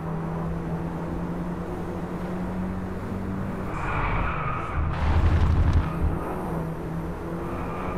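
A car engine revs and drones steadily.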